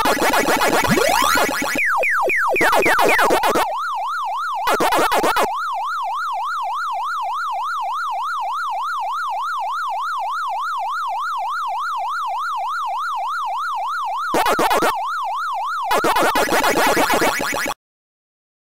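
Quick electronic chomping blips sound in bursts.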